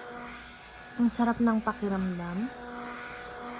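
A woman speaks briefly and softly close to the microphone.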